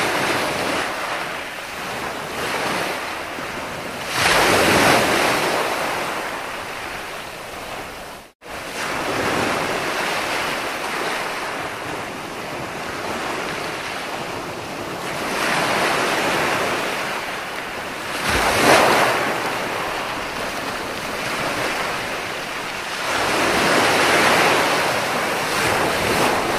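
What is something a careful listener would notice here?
Ocean waves break and wash up onto a beach in rolling surges.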